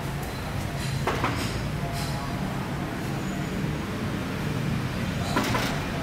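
A woman knocks on a door.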